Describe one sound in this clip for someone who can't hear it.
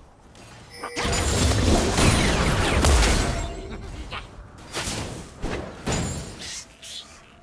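Spell blasts and weapon hits crash and clash in a fast game battle.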